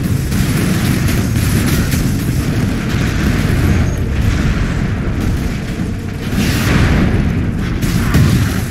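A jet pack roars with a steady rushing thrust.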